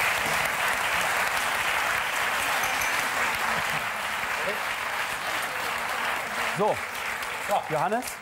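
An audience applauds and murmurs in a large room.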